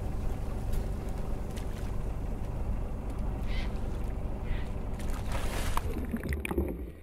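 A swimmer splashes in open water.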